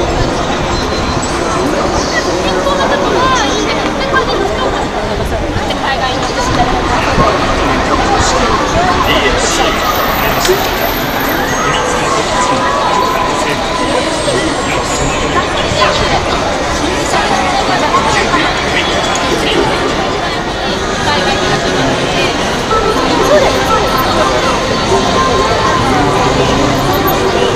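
A crowd of people chatters all around, close by.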